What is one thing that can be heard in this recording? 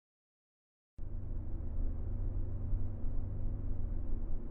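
A car engine idles with a low steady rumble.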